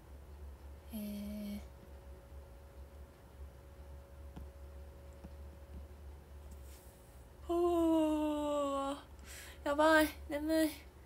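A young woman speaks close to a microphone in short, drawn-out bursts with quiet pauses between.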